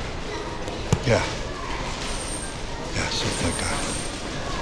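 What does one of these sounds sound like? A middle-aged man speaks quietly and hesitantly nearby.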